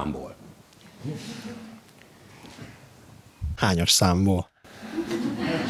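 A middle-aged man speaks calmly and warmly into a clip-on microphone, close by.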